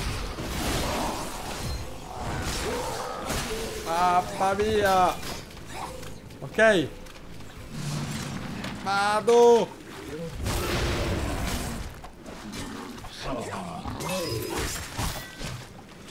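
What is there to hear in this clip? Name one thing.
Sword blows clang and slash in a fight.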